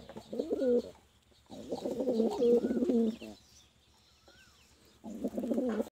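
Pigeons coo loudly in low, rolling bursts close by.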